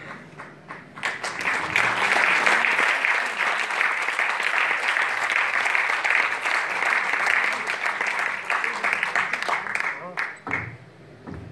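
A crowd applauds and cheers loudly in a large hall.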